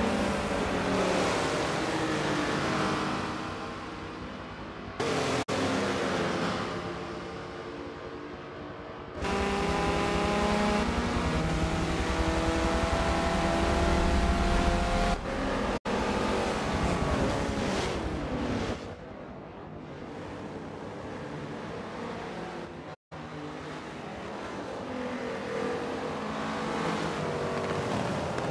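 Racing car engines roar and rev loudly as cars speed past.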